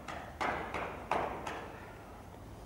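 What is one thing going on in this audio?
A horse trots on soft ground in a large echoing hall.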